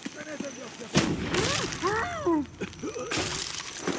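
A man groans and gasps while being choked.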